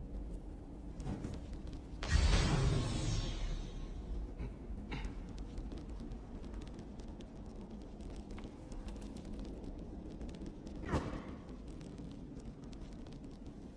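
A torch flame crackles and hisses.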